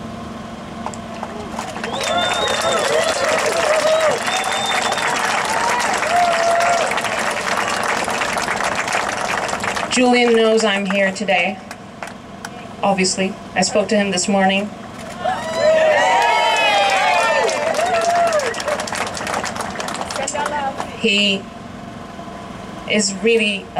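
A young woman speaks loudly through a microphone and loudspeakers, outdoors.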